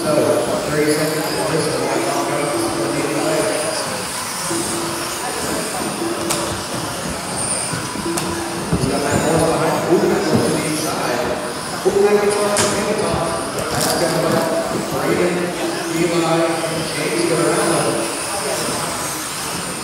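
Small electric model cars whine and buzz as they race past.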